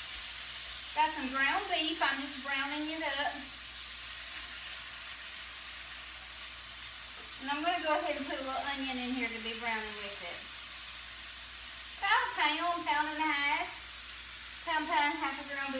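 A woman speaks nearby in a calm, chatty way.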